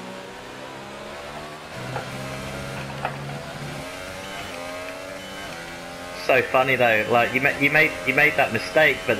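A racing car engine whines and revs up through the gears.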